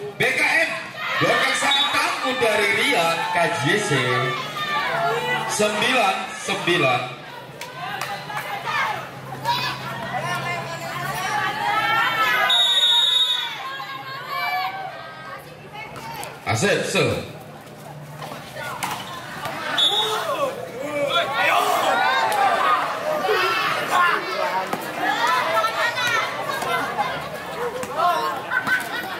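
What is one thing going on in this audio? A crowd of spectators shouts and cheers outdoors.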